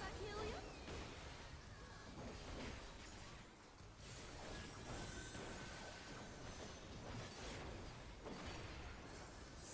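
Electronic game music plays steadily.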